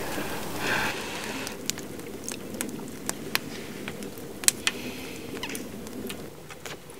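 A campfire crackles and pops nearby.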